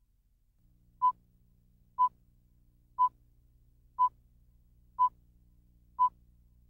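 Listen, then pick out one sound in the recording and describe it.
A short, high electronic beep sounds once every second as a countdown.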